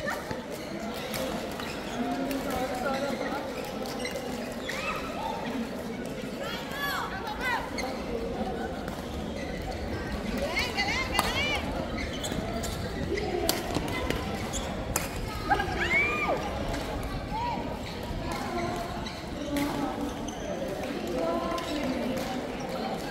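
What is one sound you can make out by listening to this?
A hubbub of many voices echoes through a large hall.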